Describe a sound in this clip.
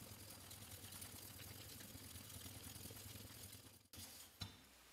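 A metal blade scrapes back and forth on a sharpening stone.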